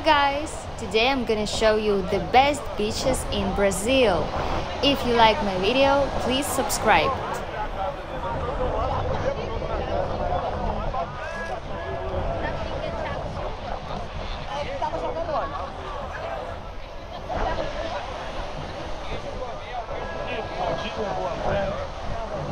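Waves break and wash onto the shore a short way off.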